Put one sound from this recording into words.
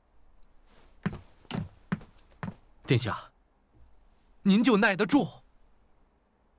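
A young man speaks sharply and tensely, close by.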